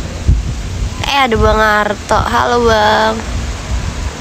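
A young woman speaks in a drawn-out, sing-song voice close by.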